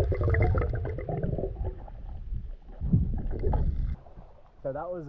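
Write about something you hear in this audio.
Water bubbles and rushes loudly underwater.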